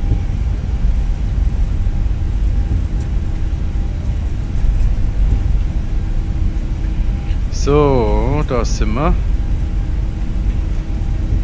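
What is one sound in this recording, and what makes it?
Jet engines rumble steadily and low.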